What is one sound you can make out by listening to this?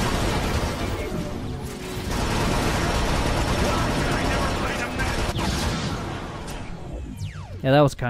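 Gunfire and blasts ring out in a loud battle.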